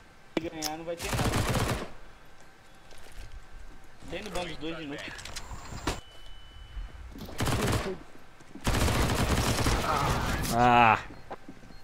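Gunfire bursts from a game rifle.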